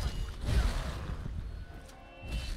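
A magic blast roars with a loud whoosh.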